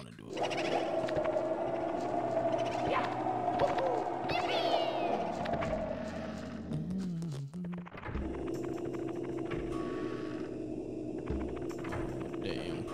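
Eerie game music plays steadily.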